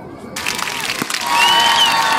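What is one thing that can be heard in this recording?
A bat cracks against a baseball.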